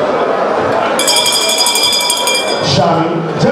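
A handbell rings loudly.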